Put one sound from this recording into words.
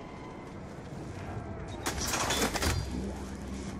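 A weapon fires with a loud blast.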